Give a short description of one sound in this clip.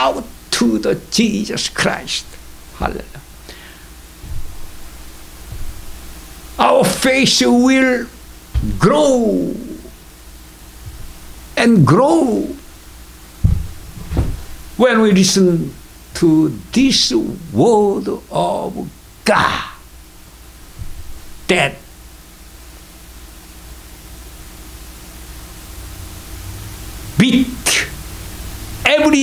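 An elderly man speaks and sings with animation into a microphone, with pauses.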